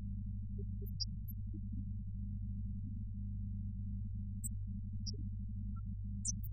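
A pipe organ plays low, sustained notes.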